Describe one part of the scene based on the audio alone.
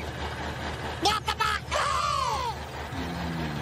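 Cartoon rabbits scream loudly with wild, high-pitched voices.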